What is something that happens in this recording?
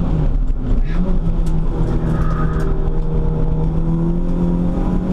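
A car engine roars loudly at high revs, heard from inside the cabin.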